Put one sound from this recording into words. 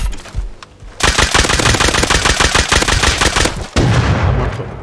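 A loud blast roars from a weapon being fired.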